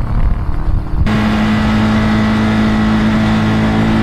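A Ducati V-twin motorcycle rumbles through an echoing tunnel.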